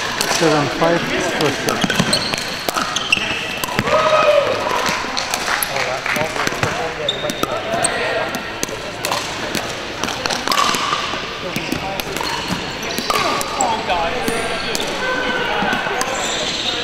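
Paddles strike a plastic ball with sharp pops in a large echoing hall.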